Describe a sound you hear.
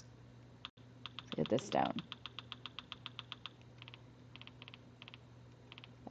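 Soft menu ticks click rapidly as a game inventory scrolls.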